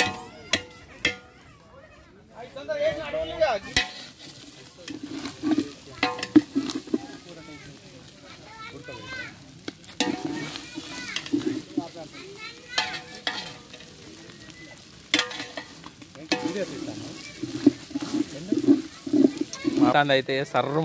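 A spoon scrapes and clatters against a metal pot.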